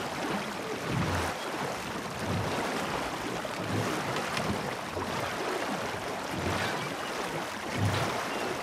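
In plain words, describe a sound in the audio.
Water laps against a wooden boat's hull.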